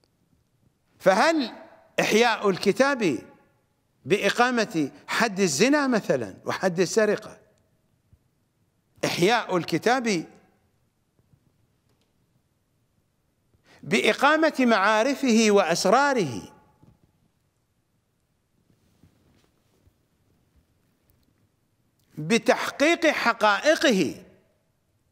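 A middle-aged man speaks with animation into a close microphone, in bursts broken by pauses.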